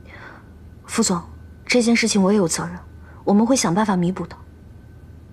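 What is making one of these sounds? A young woman speaks pleadingly, close by.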